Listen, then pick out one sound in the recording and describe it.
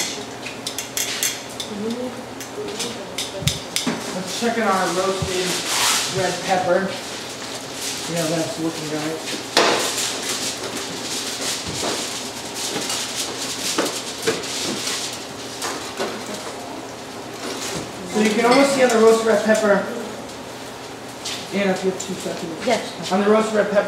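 Metal utensils clatter and clink against pans.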